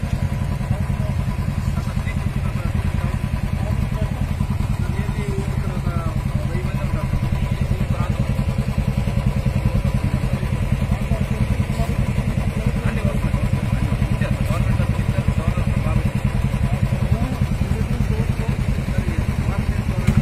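Motorcycle engines idle with a steady, rapid thumping.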